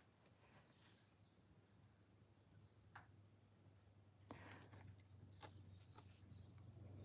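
A paintbrush softly strokes paper.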